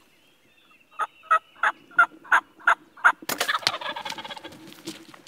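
Turkeys gobble and putt loudly nearby.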